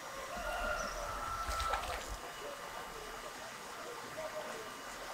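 An animal paddles through calm water with soft splashes.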